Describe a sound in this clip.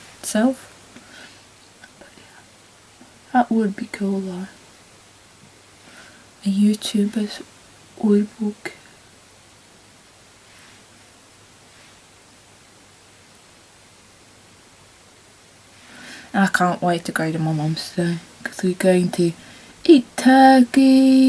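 A young woman talks calmly and close by, in short bursts with pauses.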